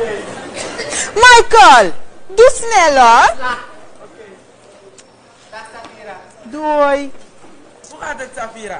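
A woman speaks loudly and theatrically.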